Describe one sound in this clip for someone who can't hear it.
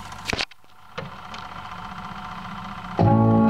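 A needle crackles and hisses in the record groove.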